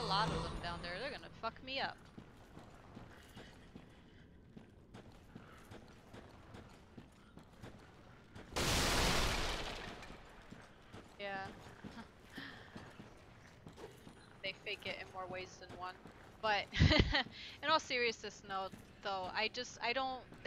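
A young woman talks with animation into a headset microphone.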